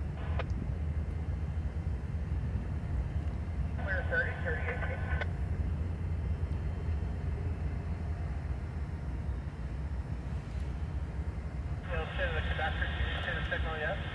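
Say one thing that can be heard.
A diesel locomotive rumbles steadily as it approaches.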